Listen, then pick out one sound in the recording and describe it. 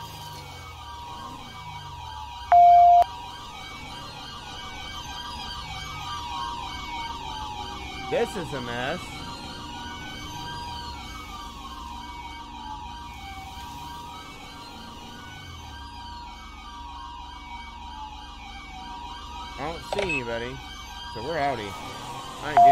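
A police siren wails up and down steadily.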